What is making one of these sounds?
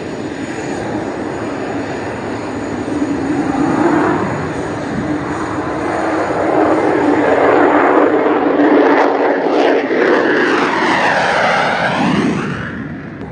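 A jet engine roars loudly as a fighter jet takes off and climbs overhead.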